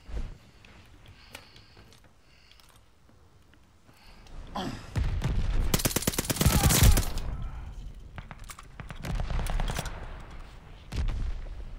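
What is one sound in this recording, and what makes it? A drum magazine clicks into a submachine gun during a reload.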